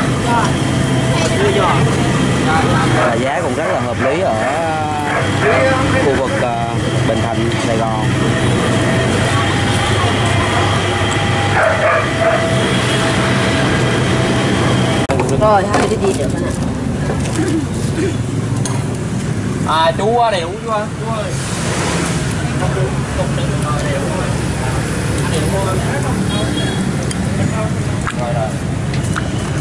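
A ladle clinks against a metal pot.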